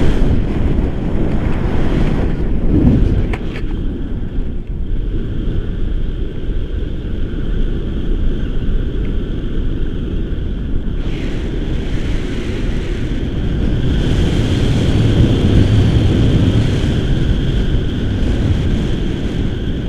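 Strong wind rushes and buffets against the microphone outdoors.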